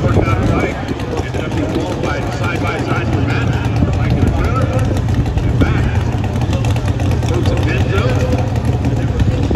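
A large outdoor crowd chatters and murmurs.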